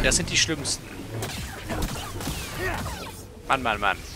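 A lightsaber hums and whooshes through swings.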